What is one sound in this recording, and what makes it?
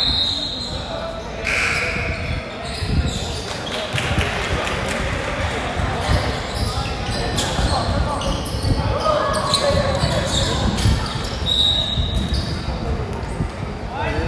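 A crowd of people chatter and call out in the echoing hall.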